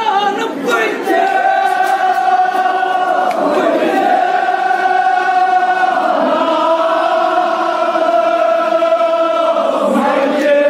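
A crowd of men chant together in unison.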